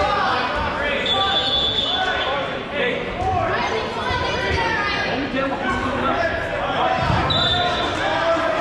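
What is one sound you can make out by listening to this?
Sneakers squeak sharply on the gym floor.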